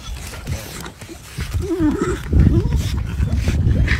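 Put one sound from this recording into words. A dog paws and digs at soil, scattering earth.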